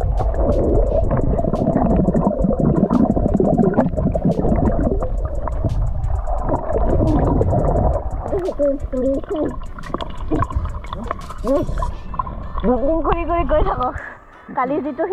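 Water churns and rumbles, heard from underwater.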